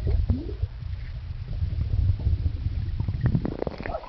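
Water rumbles and bubbles, heard muffled from under the surface.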